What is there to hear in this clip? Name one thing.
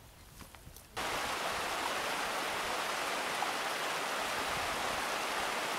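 A mountain stream rushes and splashes over rocks.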